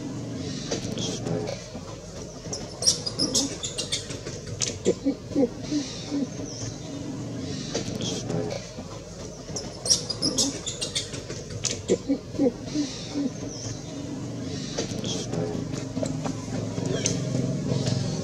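A baby monkey squeaks and chirps close by.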